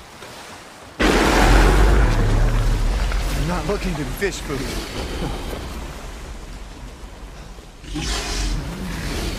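Water churns and splashes loudly.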